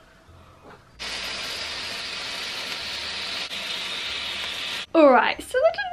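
A sparkler fizzes and hisses steadily.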